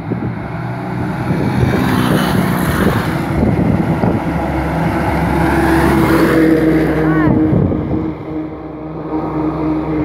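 A truck engine rumbles loudly as it drives past close by.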